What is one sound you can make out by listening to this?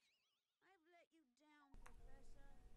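A short electronic jingle plays with falling, wobbling tones.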